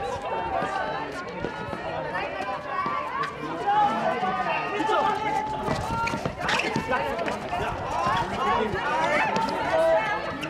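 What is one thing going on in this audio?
Sports shoes squeak sharply on a hard court.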